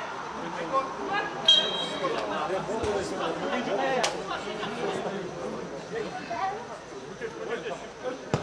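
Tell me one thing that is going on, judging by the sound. Several men shout and call out to each other outdoors.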